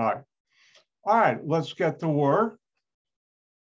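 An elderly man speaks calmly and close into a microphone.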